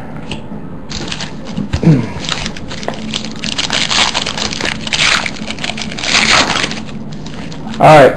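Foil wrapping crinkles and tears as a pack is opened.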